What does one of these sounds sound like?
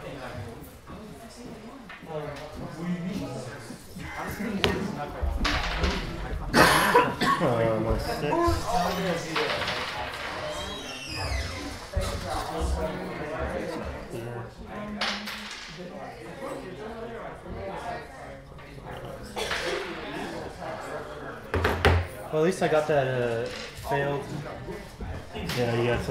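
A second man answers casually nearby.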